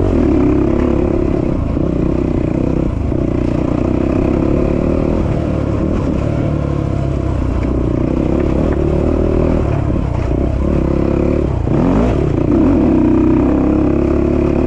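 Tyres crunch over dirt and rocks.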